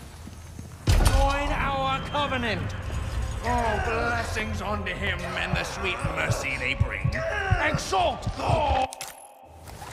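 An elderly man speaks in a slow, menacing voice.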